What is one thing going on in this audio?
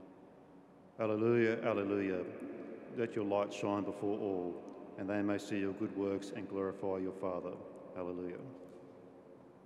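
A man chants into a microphone in a reverberant hall.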